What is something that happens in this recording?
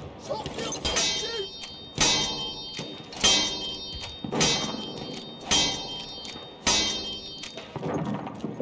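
A mechanical alarm bell clangs in repeated strokes.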